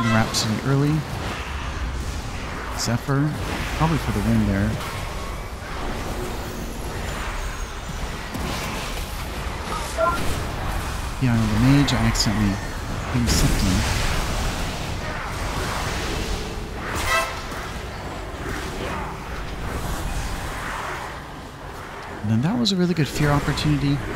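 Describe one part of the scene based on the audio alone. Magic spells whoosh and crackle in a battle.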